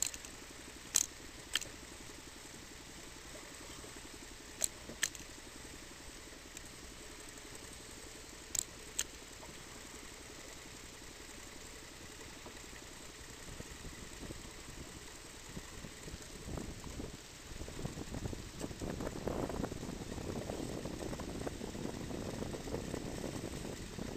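Wind blows across the open water.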